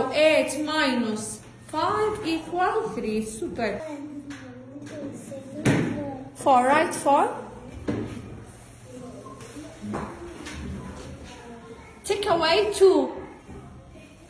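Young children speak and sing out in high, lively voices nearby.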